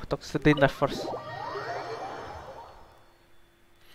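A bright electronic chime rings out and slowly fades.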